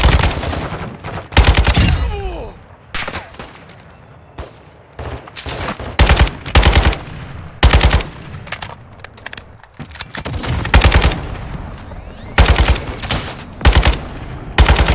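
Gunshots crack in loud rapid bursts.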